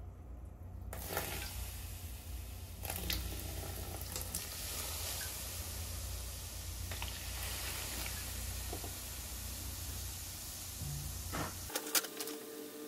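Foam fizzes and hisses as it spreads.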